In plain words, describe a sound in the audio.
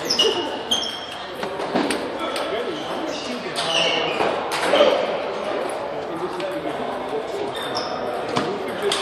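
Shoes squeak on the floor.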